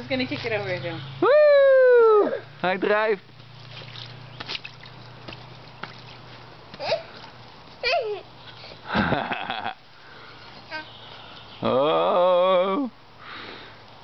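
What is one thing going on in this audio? A toddler squeals and babbles nearby.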